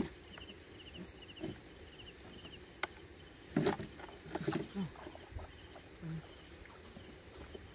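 A wet fishing net rustles as it is hauled over the side of a wooden boat.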